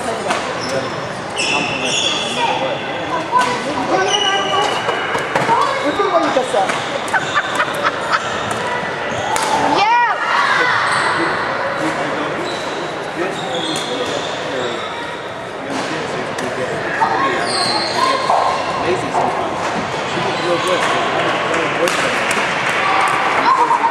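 Shoes squeak sharply on a wooden court in a large echoing hall.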